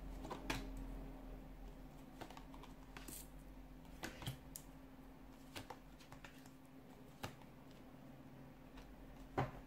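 Cards are laid down on a table with soft taps.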